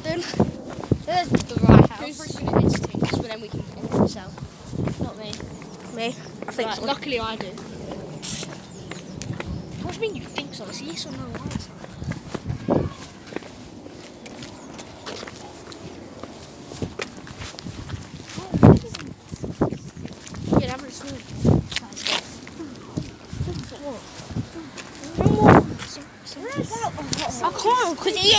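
Clothing rubs and knocks against a phone held close.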